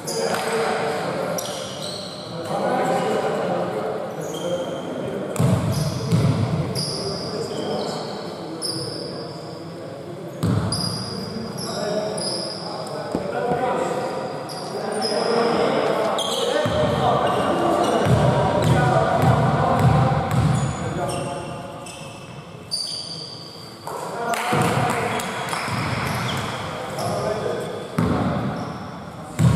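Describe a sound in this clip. Men call out to each other across an echoing hall.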